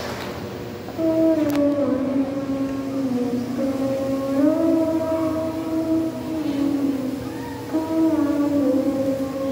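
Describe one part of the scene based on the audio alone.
A crowd of people sings together.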